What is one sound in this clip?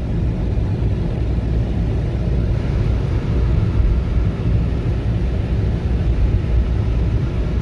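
A vehicle engine rumbles steadily while driving along a road.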